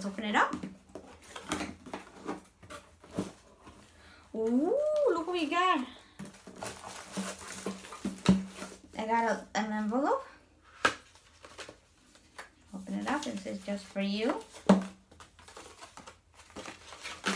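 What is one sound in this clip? Cardboard packaging rustles and taps in a woman's hands.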